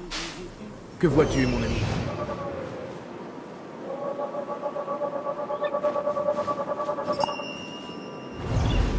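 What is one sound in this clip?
An eagle screeches.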